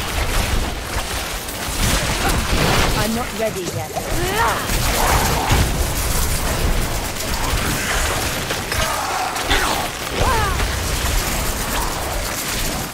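Weapons strike and thud against enemies.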